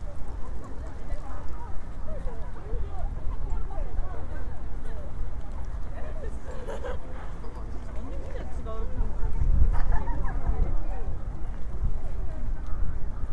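People chatter in the distance outdoors.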